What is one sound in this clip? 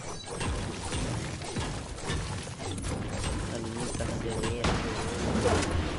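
Gunfire and building sounds pop and clatter in a video game.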